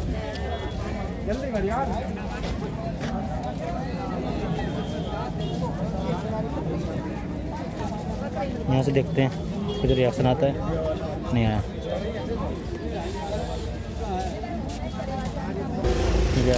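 A crowd of men chatter all around outdoors.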